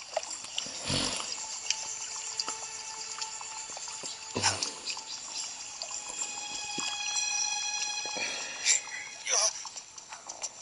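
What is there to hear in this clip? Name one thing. Electronic game music and effects play through a small tinny speaker.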